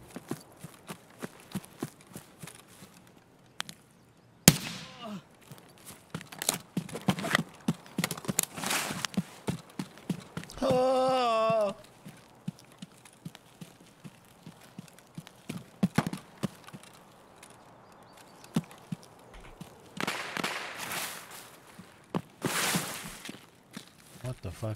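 Footsteps rustle and crunch through grass and brush.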